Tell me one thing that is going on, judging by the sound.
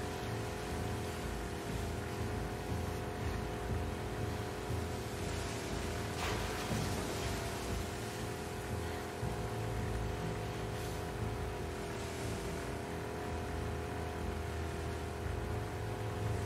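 Water splashes against a moving boat.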